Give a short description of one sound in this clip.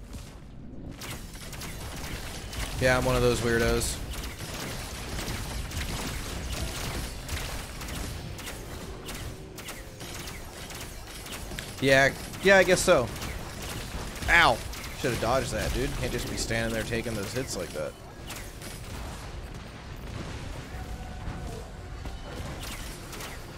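Game explosions and gunfire crackle and bang.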